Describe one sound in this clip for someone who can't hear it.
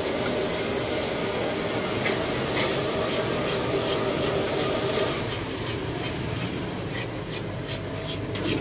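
Cane strips tap and click against a frame.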